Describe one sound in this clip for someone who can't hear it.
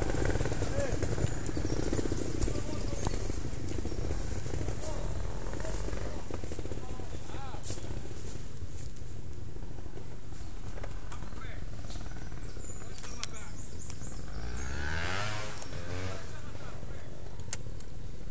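Footsteps crunch and rustle through dry leaves and undergrowth.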